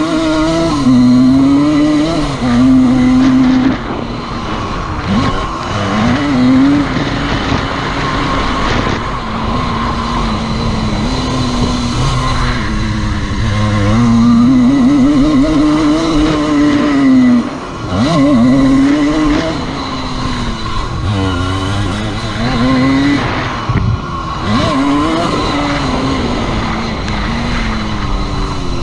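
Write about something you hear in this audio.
A dirt bike engine revs up and down loudly, close by.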